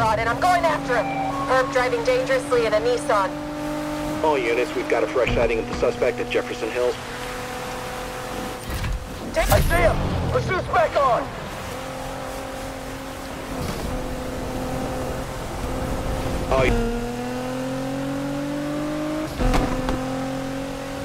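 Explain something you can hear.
A sports car engine roars at high speed, its pitch rising and dropping with gear changes.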